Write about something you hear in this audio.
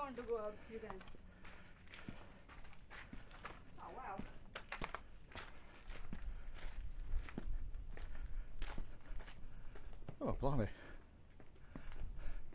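Footsteps crunch on gritty rock.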